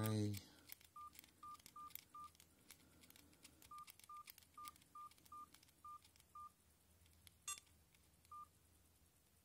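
A mobile phone beeps briefly with each key press.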